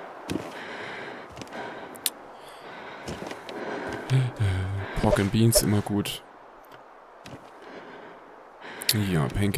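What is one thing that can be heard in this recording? Footsteps thump on a wooden floor.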